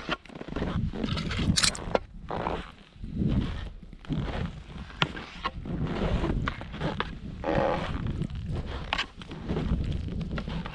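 Skis swish and hiss through deep powder snow in bursts.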